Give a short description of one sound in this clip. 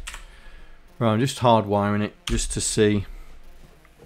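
A man speaks briefly into a close microphone.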